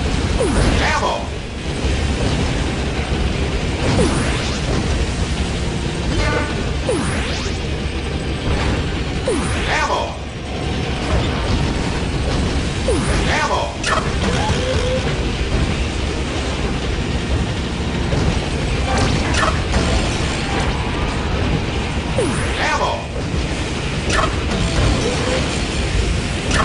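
A game kart engine hums steadily as it races.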